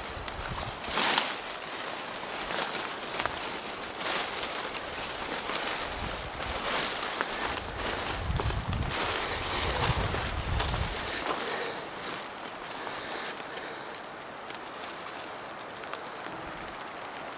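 Footsteps crunch and rustle through dense undergrowth.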